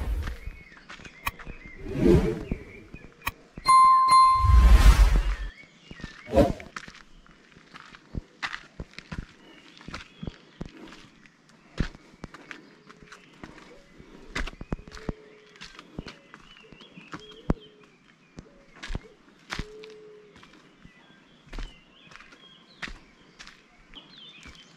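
Footsteps crunch on dry, stony ground.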